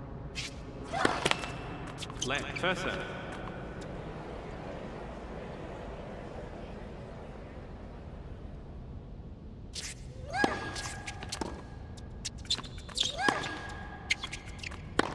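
A tennis ball is struck by rackets in a rally.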